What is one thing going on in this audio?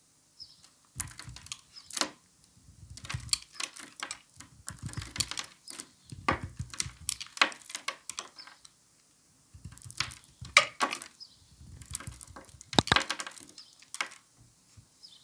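A blade scrapes and shaves a soft bar of soap in short crisp bursts.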